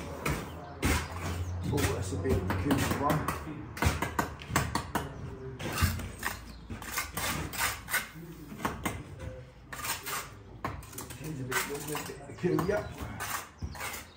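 A man knocks and taps on a wooden window frame.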